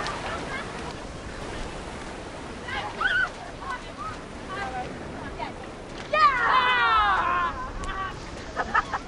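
Young women shout and laugh excitedly outdoors.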